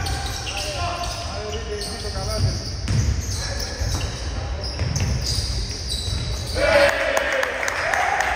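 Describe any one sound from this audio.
Sneakers squeak sharply on a hard court in a large echoing hall.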